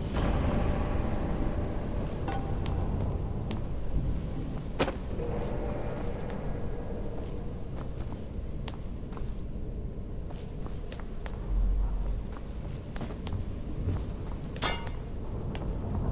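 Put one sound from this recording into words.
Footsteps scuff across a stone floor.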